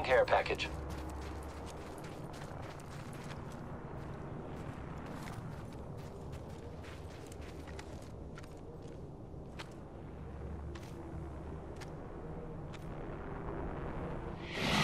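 Footsteps patter quickly over sandy ground.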